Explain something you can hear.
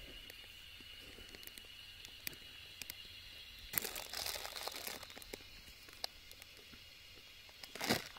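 Seeds patter lightly onto soft dough.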